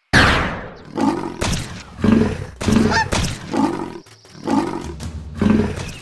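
A goose honks in alarm.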